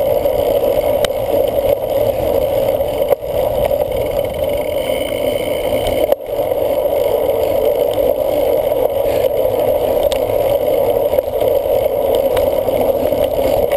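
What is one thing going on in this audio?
A cyclocross bike rattles over bumps in a trail.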